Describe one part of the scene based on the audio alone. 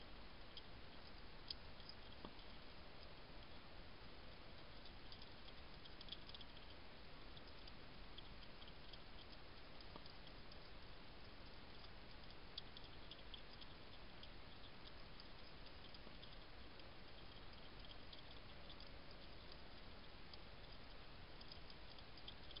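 A hedgehog chews food with small wet crunching clicks, close by.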